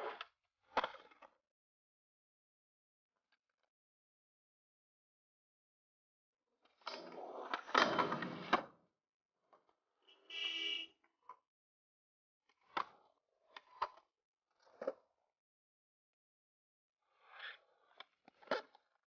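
Skateboard wheels roll over concrete.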